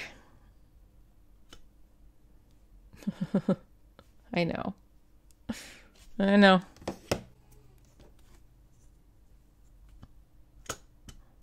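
A stamp taps softly on an ink pad.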